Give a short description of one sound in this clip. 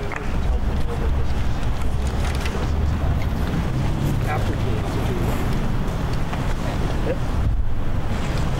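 A woman speaks loudly through a megaphone outdoors.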